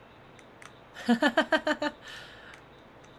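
A young woman laughs brightly close to a microphone.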